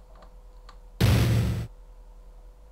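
A loud whoosh sounds as a game menu changes.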